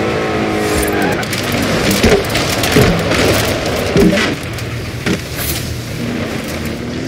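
Car tyres crunch and thump over rough ground and leaves.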